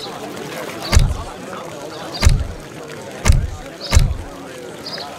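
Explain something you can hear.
Game menu buttons click with soft thuds.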